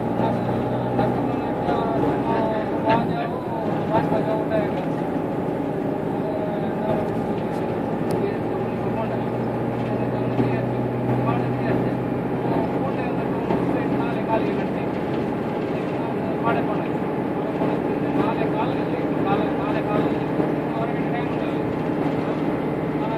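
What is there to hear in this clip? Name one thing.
A vehicle engine hums steadily from inside as it drives along.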